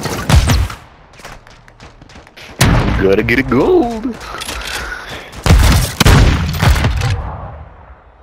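Shotgun blasts boom loudly, each followed by a ringing echo.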